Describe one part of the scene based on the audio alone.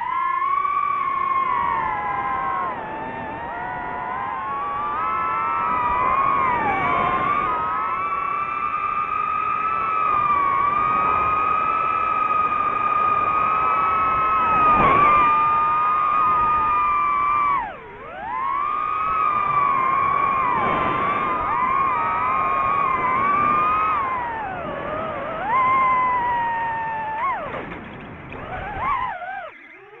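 Small drone propellers whine loudly, their pitch rising and falling with the throttle.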